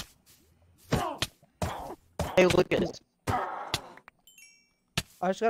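A sword strikes a player with sharp hits.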